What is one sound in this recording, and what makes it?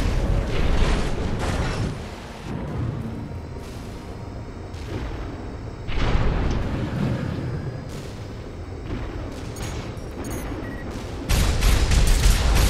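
Gunfire bursts in rapid volleys.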